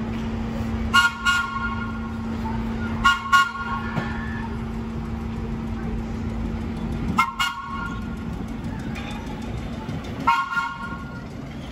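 A vintage subway train sounds its horn in short blasts.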